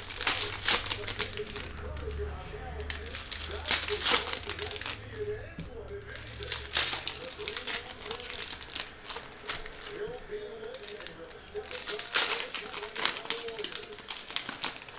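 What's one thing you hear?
Trading cards rustle and slap as a hand flips them onto a stack.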